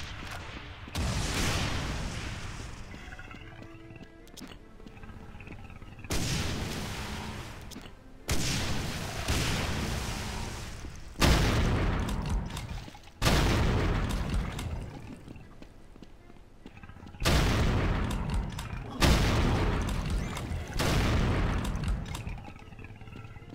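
A shotgun fires loud blasts, each echoing and fading away.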